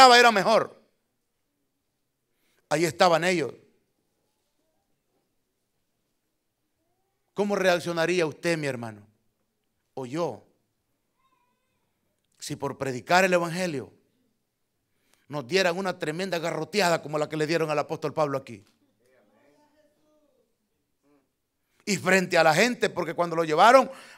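A middle-aged man speaks with emphasis through a microphone, in bursts with long pauses.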